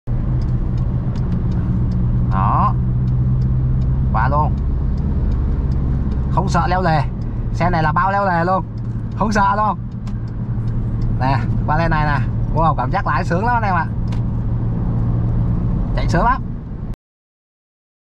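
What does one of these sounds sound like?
A car engine hums steadily, with road noise as it drives.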